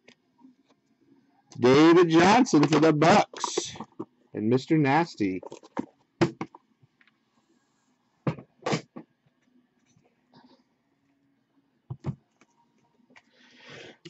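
A cardboard box is handled and set down with soft knocks.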